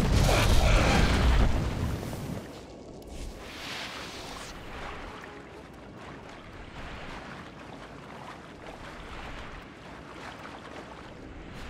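A magical energy effect crackles and fizzes.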